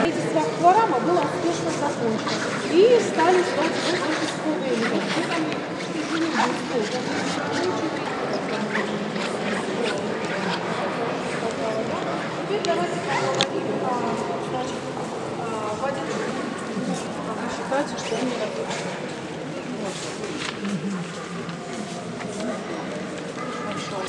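A crowd of adults murmurs and talks in a large echoing hall.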